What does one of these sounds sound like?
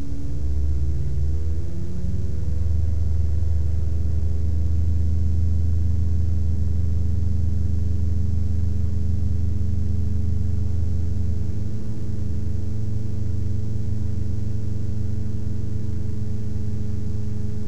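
A small propeller plane's engine drones steadily up close, its pitch rising briefly at the start.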